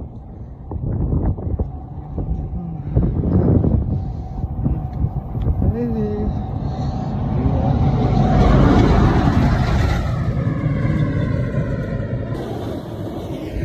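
Tyres hum on a concrete road.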